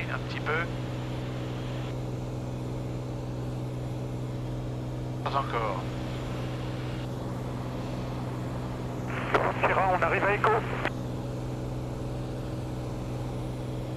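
A small plane's propeller engine drones steadily in the cabin.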